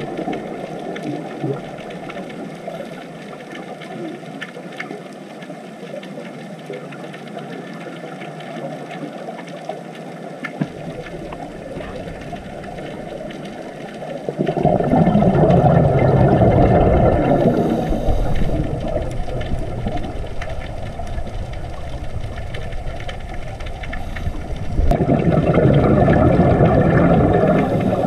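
Bubbles from divers' breathing gurgle and rumble underwater.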